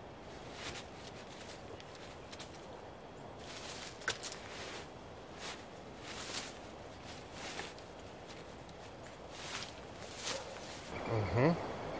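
A tarp crinkles and rustles as it is handled.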